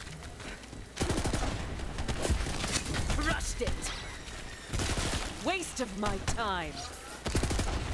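A gun fires in rapid bursts with loud bangs.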